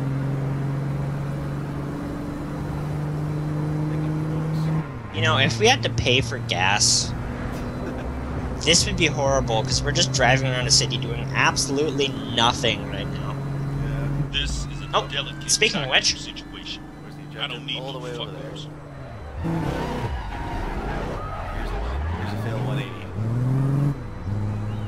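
A car engine hums steadily as a car drives along a street.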